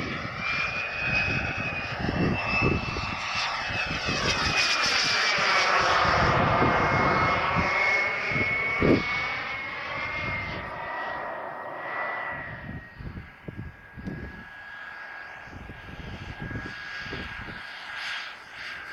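A small propeller plane's engine whines overhead, its pitch sliding as it passes.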